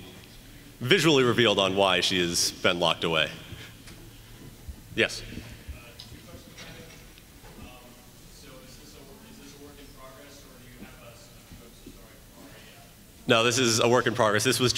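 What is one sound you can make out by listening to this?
A crowd murmurs quietly.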